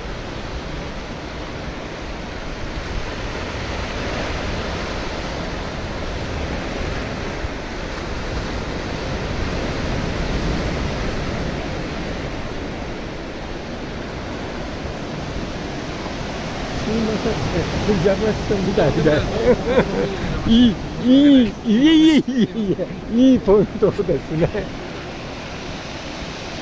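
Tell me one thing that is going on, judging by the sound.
Ocean waves break into whitewater and wash in the surf.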